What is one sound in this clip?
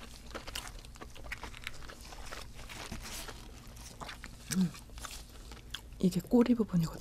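Crisp fried fish skin crackles and tears close to a microphone.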